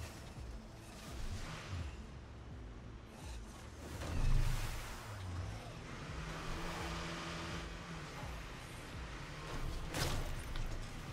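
A truck's body bumps and thuds against rocks.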